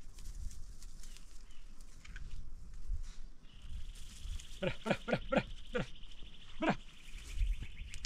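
A dog's paws pad through dry grass.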